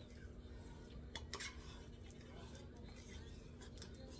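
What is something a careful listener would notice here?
Thick liquid pours from a can into a metal pot.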